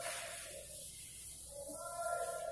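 A board eraser rubs across a chalkboard.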